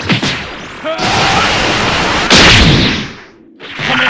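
Energy blasts whoosh and roar.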